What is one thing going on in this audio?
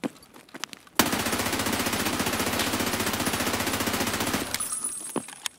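An automatic rifle fires a long, rapid burst indoors.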